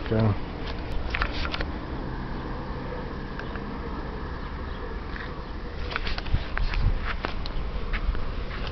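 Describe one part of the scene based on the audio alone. Hands knock and rustle against a metal railing.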